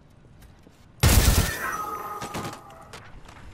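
A gun fires a short, loud burst of shots that ring out and fade.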